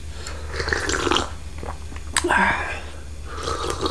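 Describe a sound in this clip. A man slurps tea from a cup.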